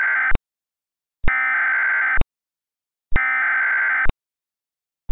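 Three short bursts of buzzing emergency alert data tones sound.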